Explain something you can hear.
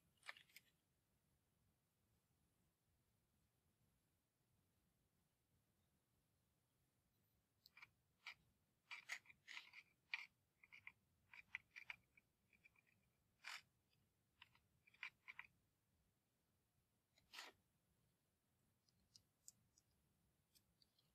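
Wooden matchsticks click and rattle against each other as they are handled.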